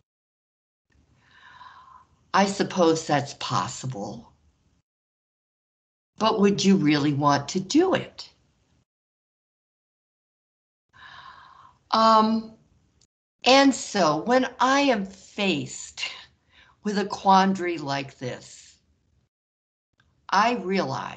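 A man explains calmly, heard through an online call, with pauses between phrases.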